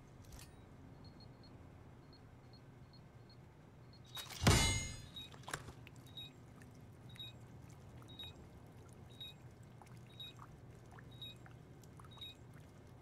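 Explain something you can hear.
An electronic device beeps at a steady, even pace.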